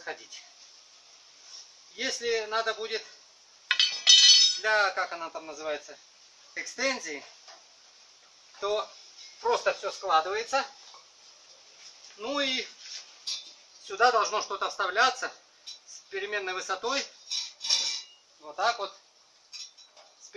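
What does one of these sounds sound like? Metal parts clank.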